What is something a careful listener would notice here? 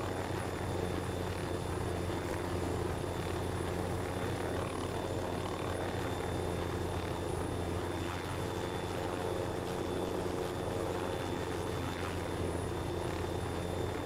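A helicopter's rotor drones and thumps steadily.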